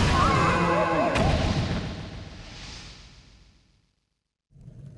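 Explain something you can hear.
A burst of video game sound effects swells and fades away.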